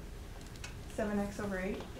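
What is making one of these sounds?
A young woman speaks loudly and with animation.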